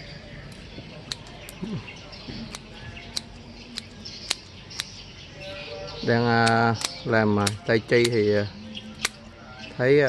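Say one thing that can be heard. Pruning shears snip twigs with sharp clicks.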